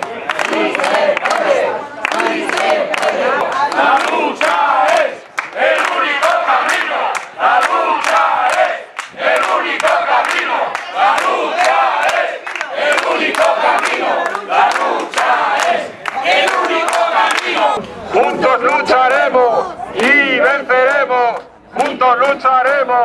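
A crowd of men and women chants and shouts outdoors.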